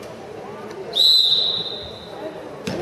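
A referee's whistle blows one sharp blast.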